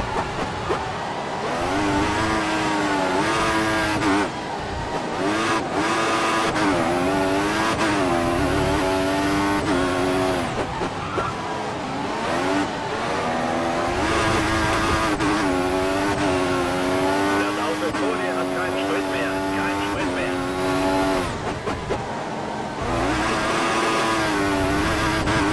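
A racing car engine whines loudly, rising in pitch through the gears and dropping as it shifts down.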